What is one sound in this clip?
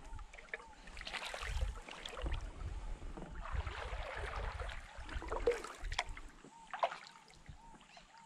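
A kayak paddle splashes and drips in calm water.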